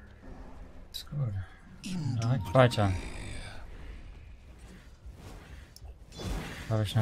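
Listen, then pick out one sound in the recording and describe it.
A young man talks into a microphone with animation, close by.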